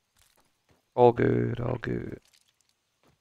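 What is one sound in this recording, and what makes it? A man speaks into a microphone close by.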